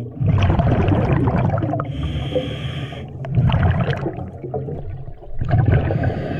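A diver's exhaled air bubbles rumble and gurgle underwater in bursts.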